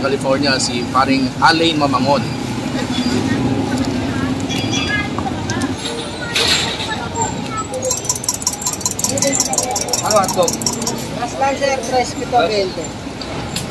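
Voices murmur on a busy street.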